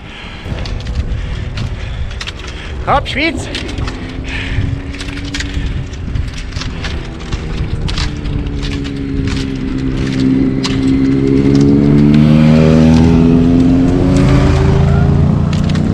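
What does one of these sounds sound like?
Small wheels rumble steadily over a rough road.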